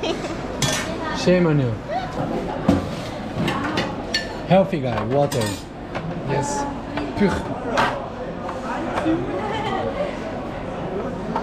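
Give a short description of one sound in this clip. Men and women chatter nearby in a busy, echoing room.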